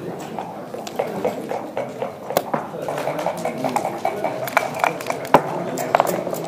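Plastic game pieces click and clack against a wooden board.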